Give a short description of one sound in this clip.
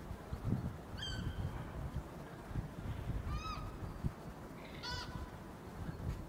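Gulls call overhead outdoors.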